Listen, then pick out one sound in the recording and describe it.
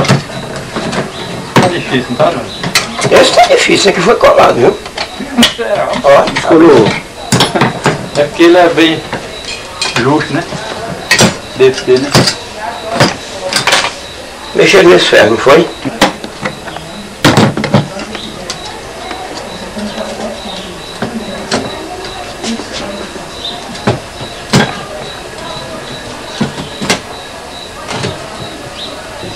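Metal parts click and clatter as hands work on a small appliance.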